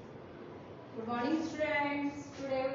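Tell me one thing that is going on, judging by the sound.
A woman speaks calmly and clearly close to a microphone.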